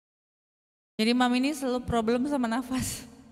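A young woman sings into a microphone close by.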